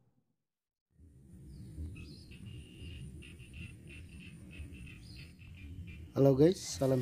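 Shallow water trickles gently along a muddy ditch.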